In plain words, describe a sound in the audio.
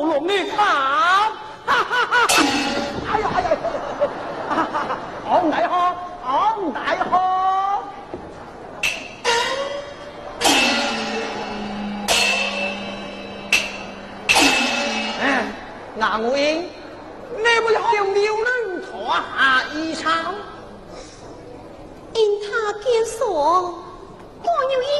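A man sings in a high, stylised opera voice.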